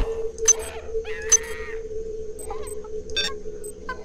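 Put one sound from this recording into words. Short electronic blips sound as items are picked up.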